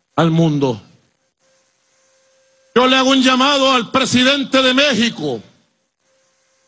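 A man speaks forcefully into a microphone over loudspeakers outdoors.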